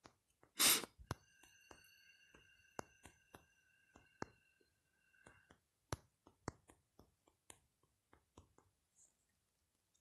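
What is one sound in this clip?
Soft keyboard clicks tap quickly.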